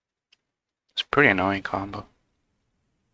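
A young man speaks briefly and with animation into a close microphone.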